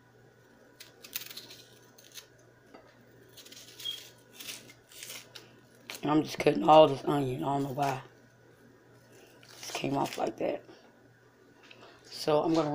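A knife scrapes and taps against a hard-boiled egg.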